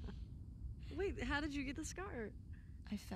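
A young woman asks a question softly, close by.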